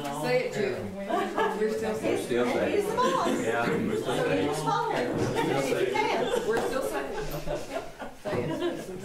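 People murmur and talk nearby.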